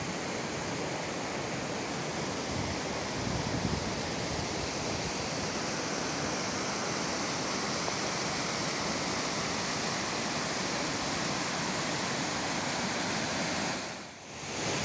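A stream rushes and splashes over rocks nearby.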